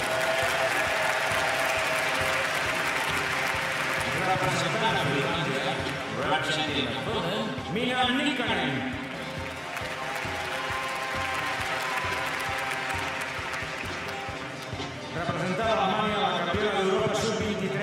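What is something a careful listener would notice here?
A large stadium crowd cheers and murmurs outdoors.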